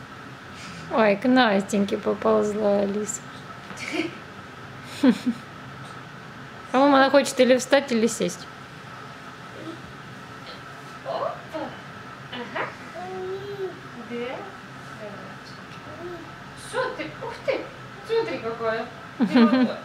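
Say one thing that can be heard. A young woman talks warmly and playfully to a baby nearby.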